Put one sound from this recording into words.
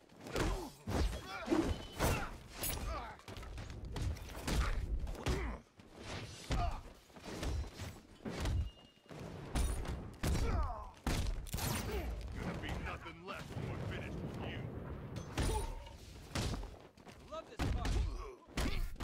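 Punches and kicks land with heavy thuds again and again.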